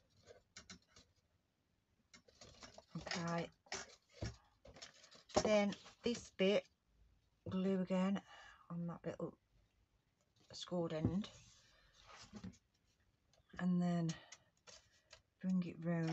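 Stiff card rustles and creases as it is bent by hand.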